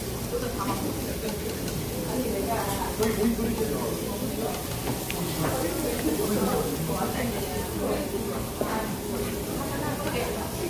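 Young boys talk casually close by.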